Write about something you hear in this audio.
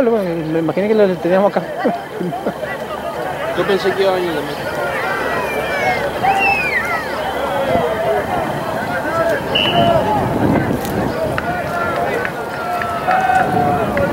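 Young men shout and call to each other outdoors on an open field.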